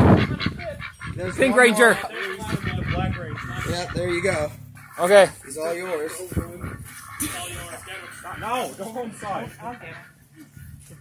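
Ducks quack loudly close by.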